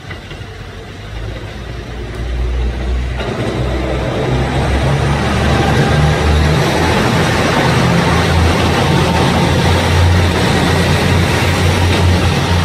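A train approaches and rumbles past close by, wheels clattering on the rails.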